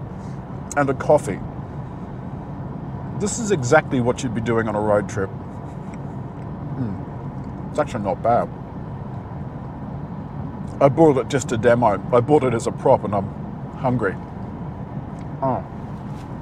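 A car's engine and tyres hum steadily on a motorway.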